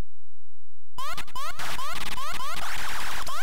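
A harsh electronic buzzing noise rattles rapidly.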